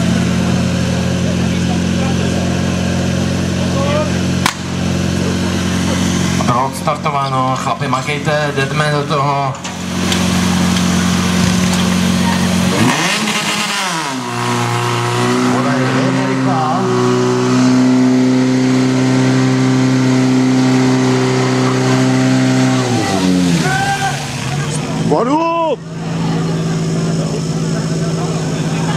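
A pump engine drones loudly and steadily.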